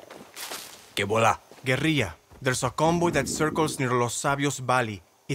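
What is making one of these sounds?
A man speaks calmly and clearly up close.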